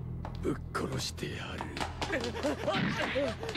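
A man speaks menacingly, close by.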